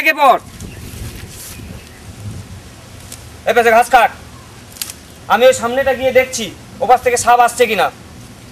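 A man speaks nearby outdoors in animated bursts.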